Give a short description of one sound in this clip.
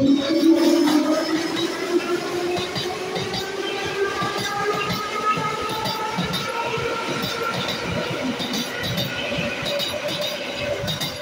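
A train's motor whines, falling slowly in pitch.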